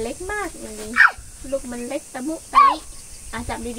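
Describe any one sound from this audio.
A small child squeals and babbles.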